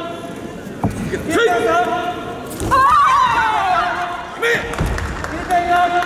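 Young women shout sharp karate kiai in a large echoing hall.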